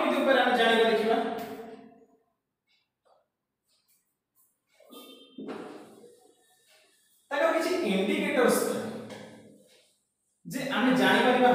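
A young man speaks calmly and clearly close by.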